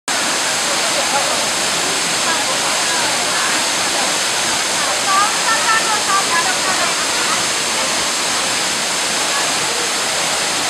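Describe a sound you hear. A waterfall rushes steadily nearby.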